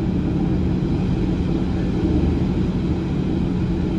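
Another train rushes past close by.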